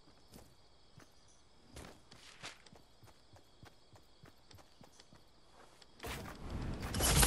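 Footsteps tap quickly on wooden planks.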